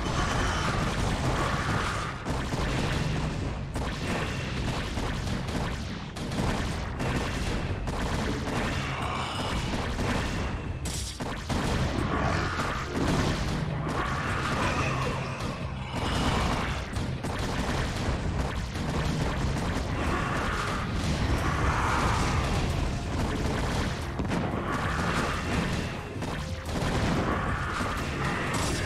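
Laser blasts and explosions crackle in a game battle.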